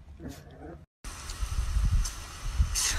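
A lawn sprinkler hisses as it sprays water.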